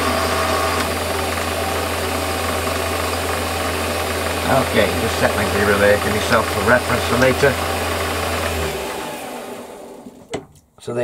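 A lathe motor hums steadily, then winds down and stops.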